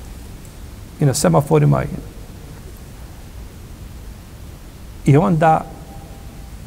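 An elderly man speaks calmly and close to a microphone, in short phrases with long pauses.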